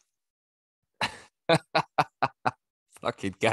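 A man laughs in short bursts close to a microphone.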